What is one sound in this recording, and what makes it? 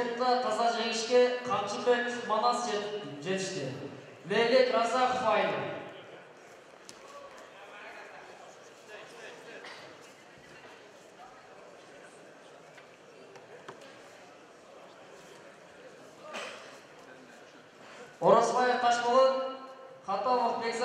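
Spectators shout and cheer loudly in a large echoing hall.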